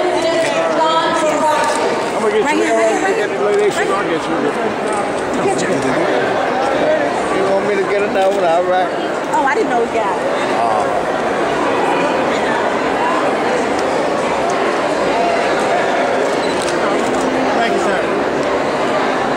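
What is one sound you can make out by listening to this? A crowd chatters in the background.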